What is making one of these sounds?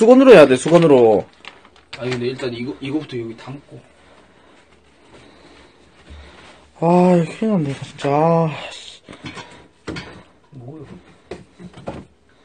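A young man talks loudly and animatedly into a nearby microphone.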